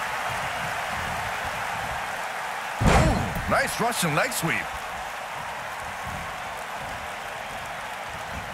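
A large arena crowd cheers steadily.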